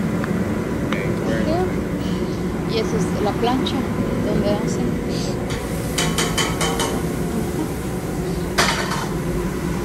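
A rotating serving counter hums low and steady.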